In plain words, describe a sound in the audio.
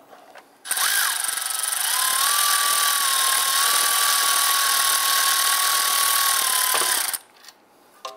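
A power ratchet whirs loudly, turning a bolt.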